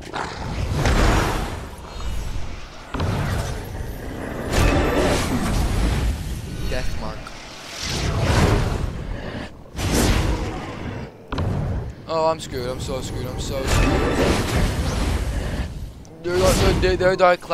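Fiery magical blasts whoosh and burst during a game battle.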